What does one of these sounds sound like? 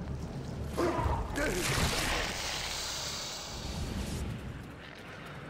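A burst of fire whooshes and crackles loudly.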